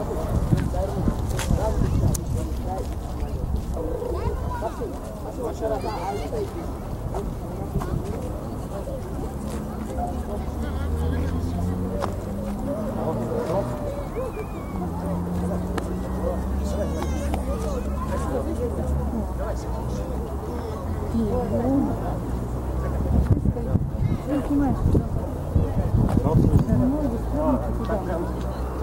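Men, women and children chatter faintly in the distance.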